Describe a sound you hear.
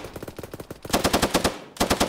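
A rifle fires sharp shots close by.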